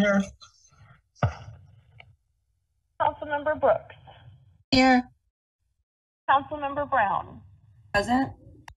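Several adults speak in turn over an online call, each saying a word or two, with pauses between.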